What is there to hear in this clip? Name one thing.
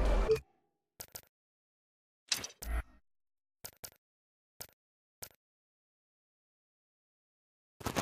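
Short soft clicks sound several times.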